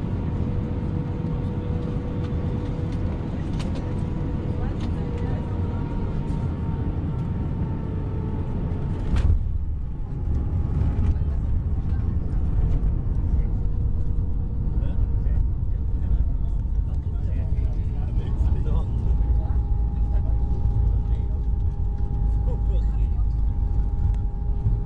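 Jet engines hum steadily with a high whine.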